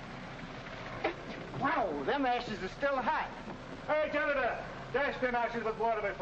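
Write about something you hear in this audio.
A man talks loudly and with animation.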